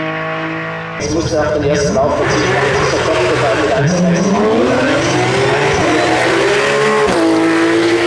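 A racing car engine revs and pops as the car launches from a standstill.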